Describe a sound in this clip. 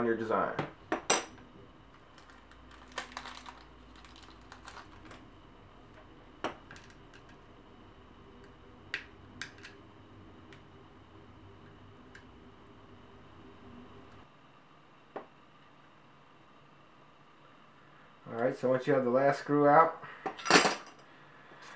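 Plastic parts click and tap as headphones are handled.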